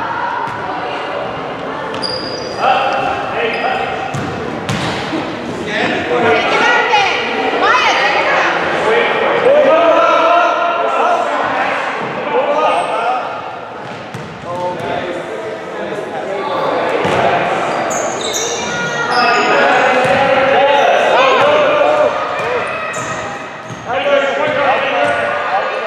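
Young girls shout and call out to each other in a large echoing gym.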